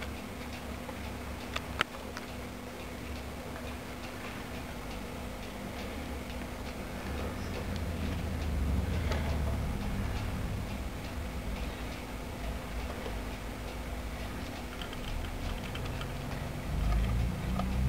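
Small rodents rustle and scratch through dry wood shavings.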